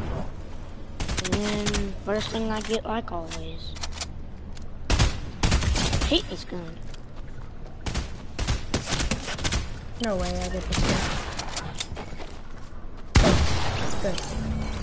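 Gunshots fire in short, sharp bursts.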